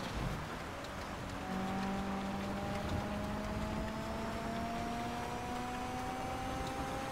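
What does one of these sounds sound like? A car engine hums steadily and slowly rises in pitch as the car speeds up.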